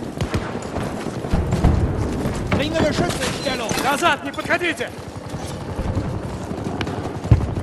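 Footsteps thud on hard ground as a soldier runs.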